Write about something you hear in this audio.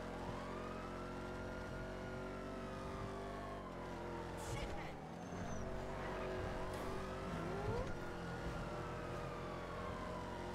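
A car engine roars at high speed, its pitch rising and falling as gears shift.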